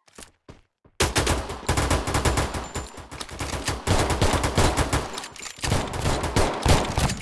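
Guns fire in rapid bursts, loud and close.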